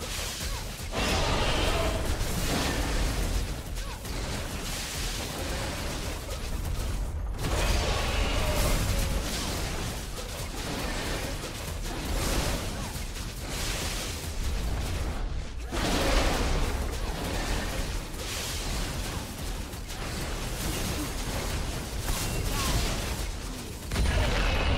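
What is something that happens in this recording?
Magic spells crackle and burst as a character fights a large monster.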